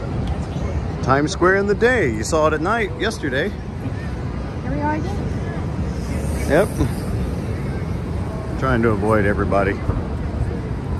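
Passers-by chat nearby.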